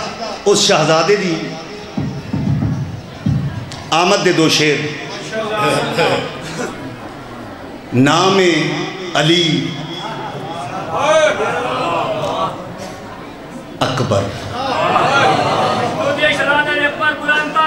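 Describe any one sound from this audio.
A man recites loudly and with feeling into a microphone, in a reverberant hall.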